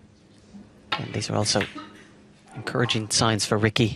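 Snooker balls knock together with a clack.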